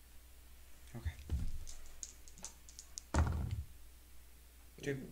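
Small plastic pieces clack onto a tabletop.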